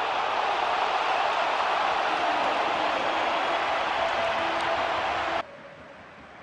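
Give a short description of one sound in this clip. A large stadium crowd roars loudly.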